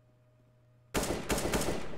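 Rifle shots fire in a rapid burst.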